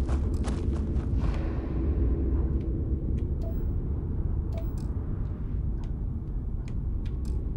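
Heavy boots crunch on rocky ground at a slow walking pace.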